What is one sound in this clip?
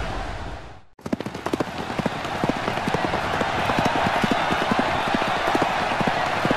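Rain pours steadily.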